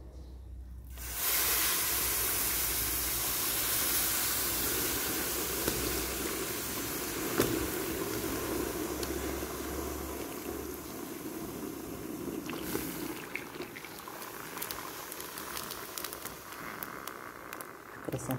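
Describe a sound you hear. Liquid sizzles loudly in a hot pan, then hisses steadily.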